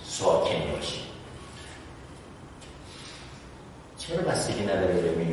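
A middle-aged man speaks calmly, as if lecturing.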